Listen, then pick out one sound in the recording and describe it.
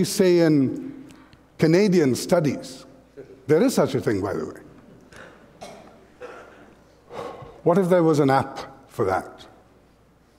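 A middle-aged man speaks with animation through a headset microphone, in a large echoing hall.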